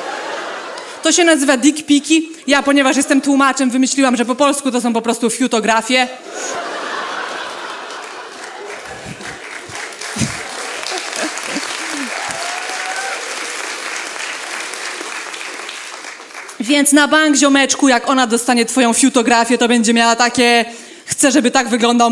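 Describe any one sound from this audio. A young woman talks with animation into a microphone in a large hall.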